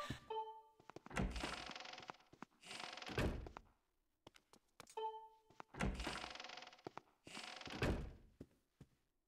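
A wooden door creaks open and swings shut.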